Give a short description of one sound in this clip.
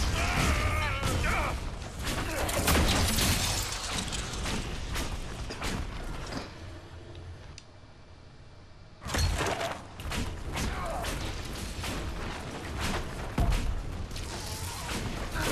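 Magic spells burst and crackle in a game battle.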